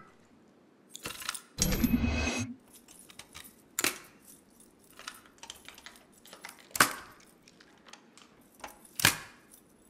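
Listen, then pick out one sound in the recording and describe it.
Metal pins click and clatter inside a lock being picked.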